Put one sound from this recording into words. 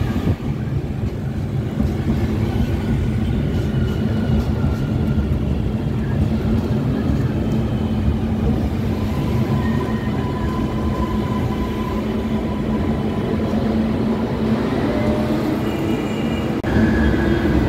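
An electric train rumbles past close by, wheels humming and squealing.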